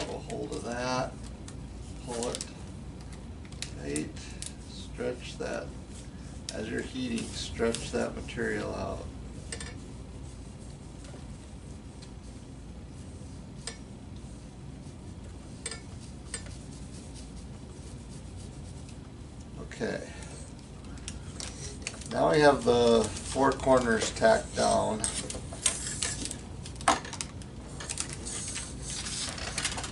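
Plastic film crinkles and rustles as hands handle it.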